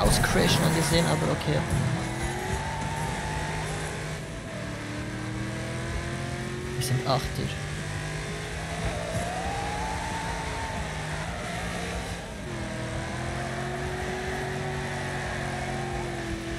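Tyres screech as a car slides through turns.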